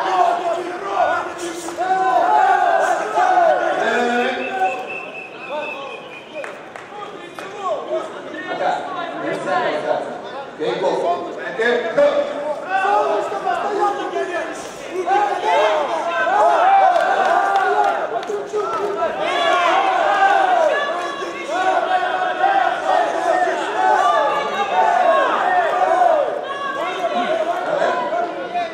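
A crowd of men and women shouts and cheers loudly in a large echoing hall.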